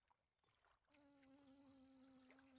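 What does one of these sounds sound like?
A fishing reel whirs as the line is wound in.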